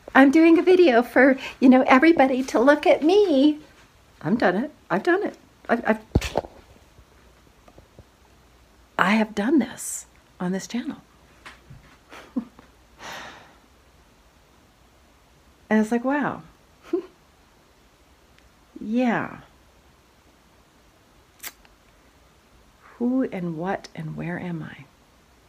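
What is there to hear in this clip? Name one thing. A middle-aged woman talks with animation close to the microphone, with pauses.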